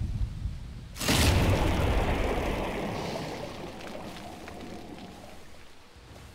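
A loud magical blast bursts and slowly fades away.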